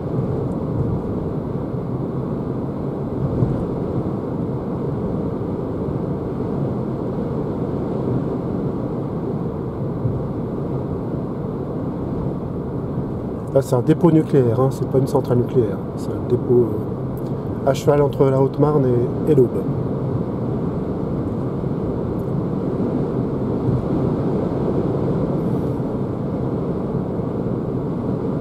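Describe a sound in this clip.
Tyres and an engine hum steadily from inside a moving car.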